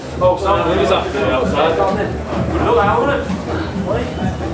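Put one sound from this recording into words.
A young man talks loudly and with animation close by.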